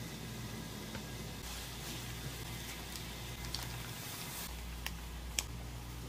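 A plastic packet crinkles.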